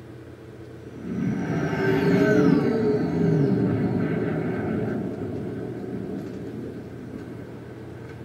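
A spaceship engine roars loudly as it flies past, then fades.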